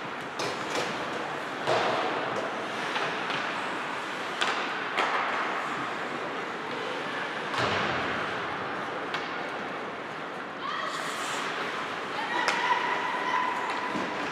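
Hockey sticks clack against the puck in sharp knocks.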